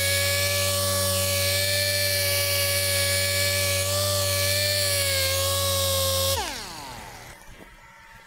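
A polishing machine hums steadily, then winds down.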